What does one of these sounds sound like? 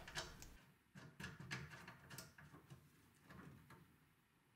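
A wooden cabinet door with glass slides and knocks softly.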